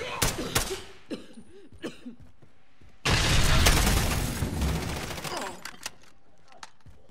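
A rifle magazine clicks and clatters during a reload.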